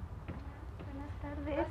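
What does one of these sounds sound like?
A woman speaks briefly, close by.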